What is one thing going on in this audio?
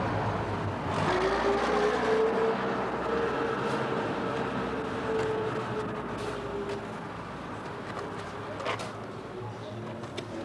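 A shovel scrapes through asphalt.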